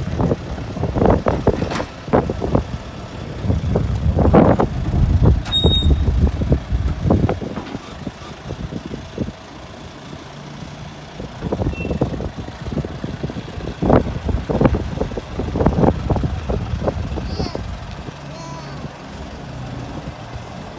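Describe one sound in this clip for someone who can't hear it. A backhoe loader's diesel engine rumbles and revs nearby, outdoors.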